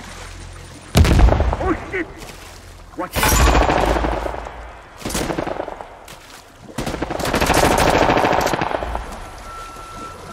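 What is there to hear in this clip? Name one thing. Water splashes and churns as swimmers paddle through it.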